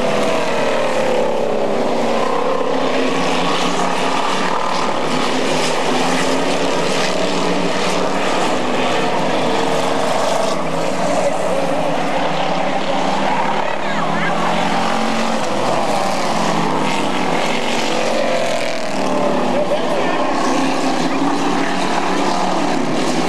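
Race car engines roar and whine as cars speed around a track.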